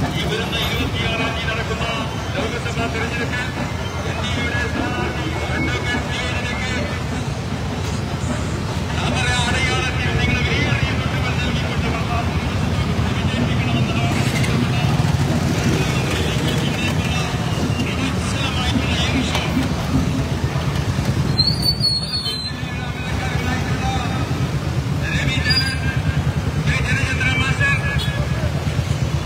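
Many motorcycle and scooter engines idle and rumble close by outdoors.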